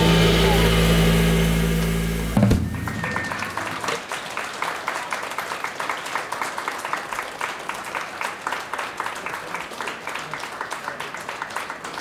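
A drummer taps a steady rhythm on cymbals.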